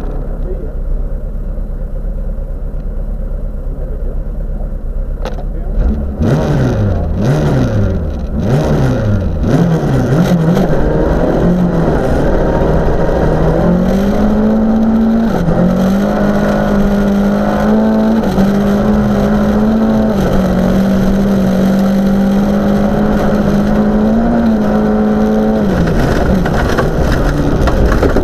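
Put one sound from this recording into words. A car engine idles roughly, then revs up sharply several times and roars loudly as the car speeds off.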